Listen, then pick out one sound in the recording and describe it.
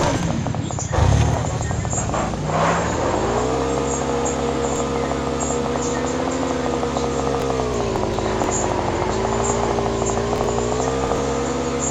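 A motorcycle engine starts up and roars steadily, its pitch rising and falling as it speeds up.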